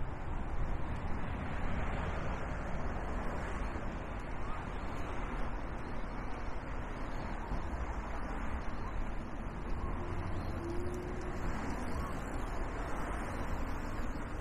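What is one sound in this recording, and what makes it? Bicycle tyres roll steadily along smooth pavement outdoors.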